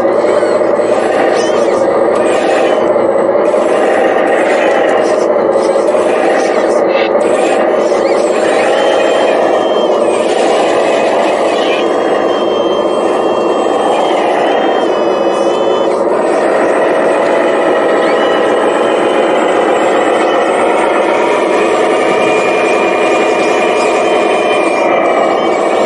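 Small electric motors whine steadily, rising and falling in pitch.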